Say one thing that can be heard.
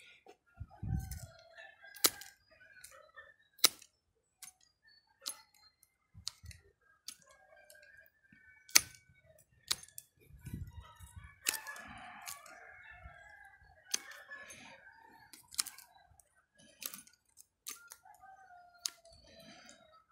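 Pruning shears snip through small branches with sharp clicks.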